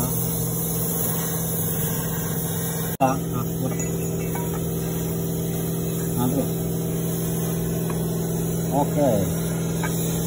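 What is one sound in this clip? Metal parts clink as a hand handles them.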